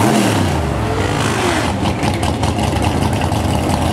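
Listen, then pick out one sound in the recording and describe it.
A race car engine roars loudly as a car speeds past.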